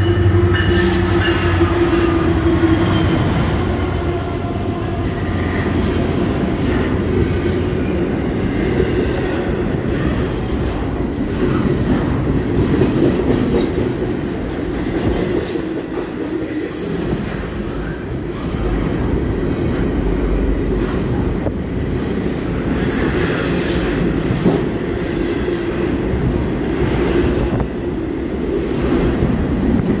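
A long freight train rolls past with a steady heavy clatter of wheels on rails.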